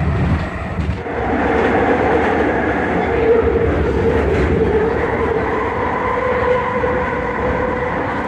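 A train's motor whines with a steady tone.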